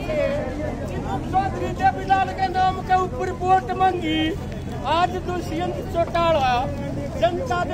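An elderly man speaks loudly with animation, close by.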